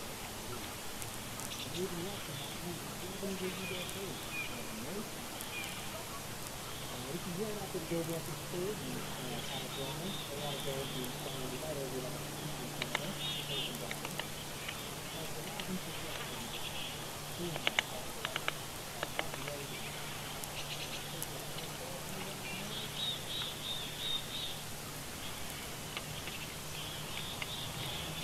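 Wind rustles through pine needles outdoors.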